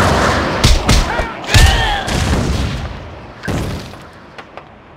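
Heavy blows thud and clang in a scuffle.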